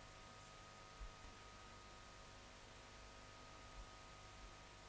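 A metal spoon knocks lightly against a table.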